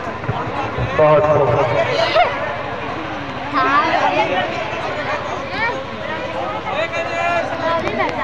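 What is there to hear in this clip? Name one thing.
A crowd of young men and onlookers shouts and cheers outdoors.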